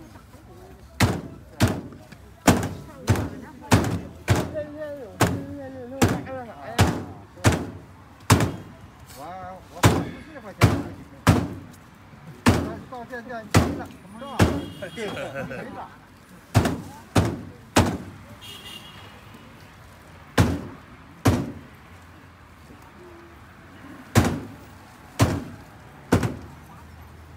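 Hands slap and pat a large slab of raw meat with dull thuds.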